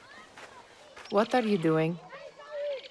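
A young woman asks a question.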